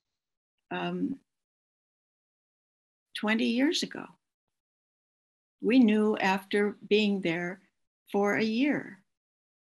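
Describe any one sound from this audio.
An elderly woman speaks calmly in short phrases, heard through an online call.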